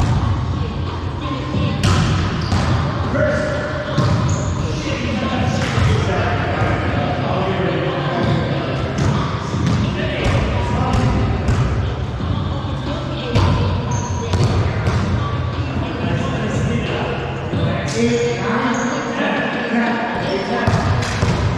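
A volleyball thumps off players' hands, echoing in a large hall.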